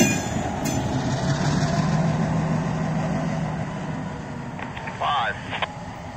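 A locomotive engine rumbles as it approaches.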